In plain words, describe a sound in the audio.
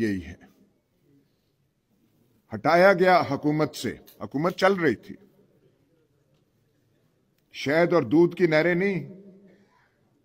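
An elderly man speaks forcefully into a microphone, in short bursts with pauses.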